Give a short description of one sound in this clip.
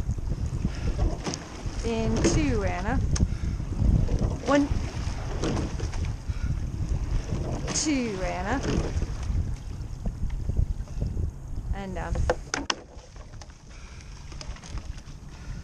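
Oars splash and knock rhythmically in the water.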